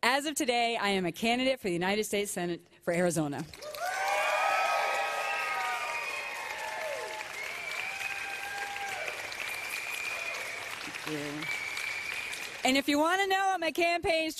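A middle-aged woman speaks with animation into a microphone, heard through loudspeakers in a large echoing hall.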